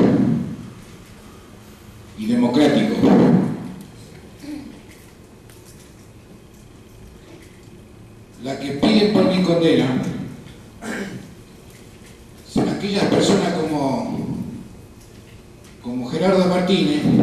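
A middle-aged man speaks into a microphone in slow, deliberate phrases with pauses, heard through a loudspeaker.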